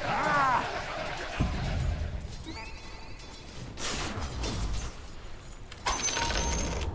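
Weapons strike and hit with sharp impacts.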